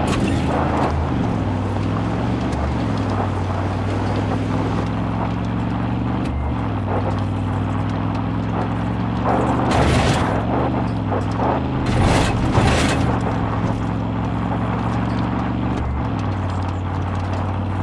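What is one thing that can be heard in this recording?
Tyres rumble and crunch over a rough dirt track.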